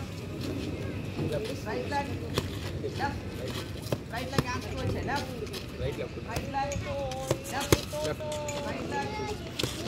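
Boxing gloves thump against padded mitts in quick punches.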